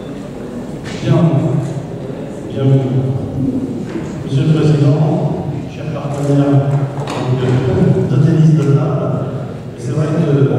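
An elderly man speaks calmly through a microphone in an echoing hall.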